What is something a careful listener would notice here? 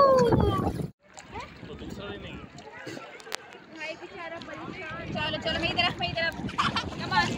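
Water laps gently around a floating tube.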